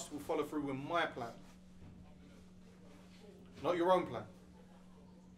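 A man speaks calmly close by in short phrases.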